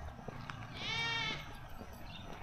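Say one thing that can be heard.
A goat bleats nearby.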